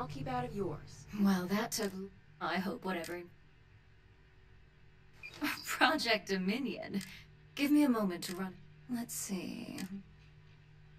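A young woman speaks with surprise.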